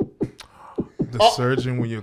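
A man exclaims loudly into a close microphone.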